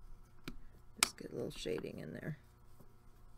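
A pencil clatters down onto a table.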